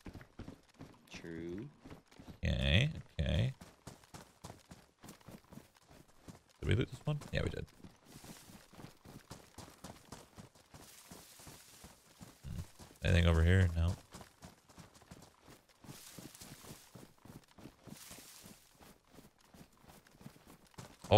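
Footsteps crunch steadily through grass.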